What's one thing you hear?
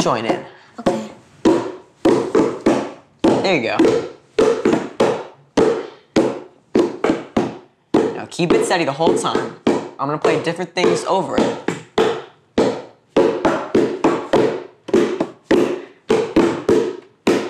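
Hand drums are slapped and tapped in a lively rhythm.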